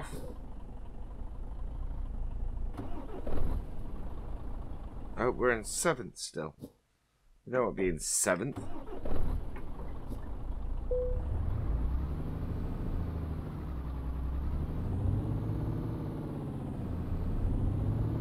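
A truck engine idles with a low rumble, then revs up and down as the truck pulls away.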